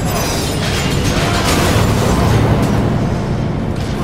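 An explosion bursts with a fiery roar.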